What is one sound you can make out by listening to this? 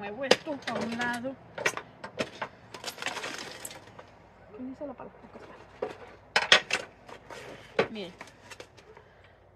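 Gravelly soil rattles and crunches as it is scooped.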